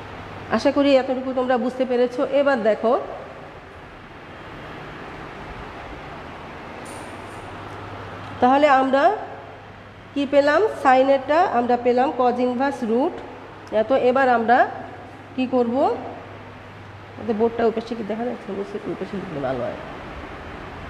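A woman speaks in short, clear phrases close by, with pauses between them.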